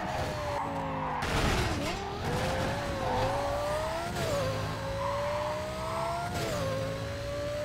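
A sports car engine revs high as the car races.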